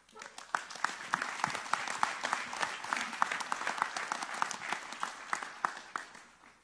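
A crowd claps steadily in a large room.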